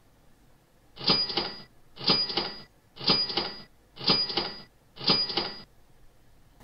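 A countdown timer beeps five times, once a second.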